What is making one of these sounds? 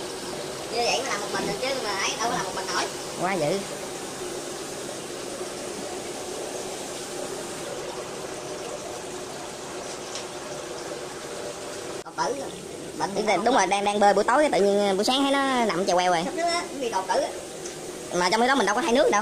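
Water pours and splashes into a tank.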